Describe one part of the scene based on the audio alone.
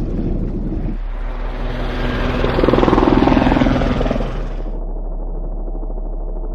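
A helicopter's rotor thumps and drones overhead.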